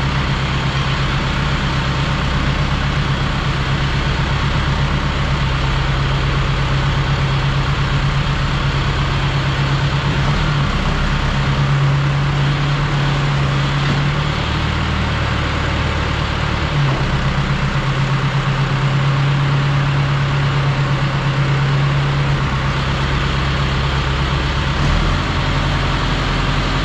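A feed machine whirs and hisses as it blows out feed.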